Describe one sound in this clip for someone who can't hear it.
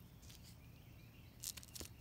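A finger brushes softly along a feather.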